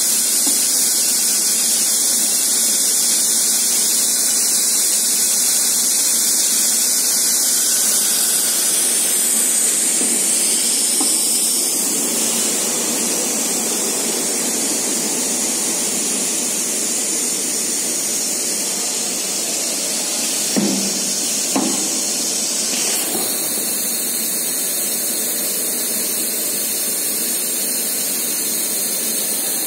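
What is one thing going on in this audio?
Machinery hums steadily in a large hall.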